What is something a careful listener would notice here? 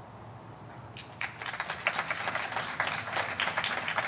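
An audience applauds outdoors.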